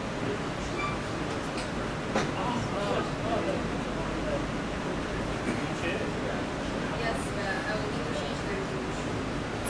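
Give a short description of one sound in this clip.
Men talk quietly with each other.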